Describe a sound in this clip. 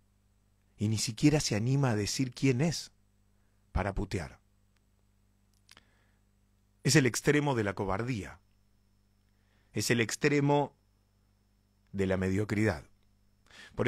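A young man speaks close into a microphone in short, expressive bursts with pauses.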